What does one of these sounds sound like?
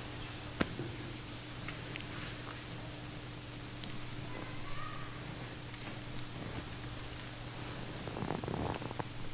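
A man prays quietly through a microphone.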